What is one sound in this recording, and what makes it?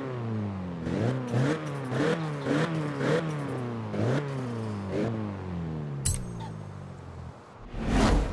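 A car engine revs up and down again and again.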